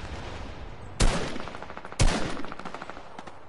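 A rifle fires two loud, echoing shots.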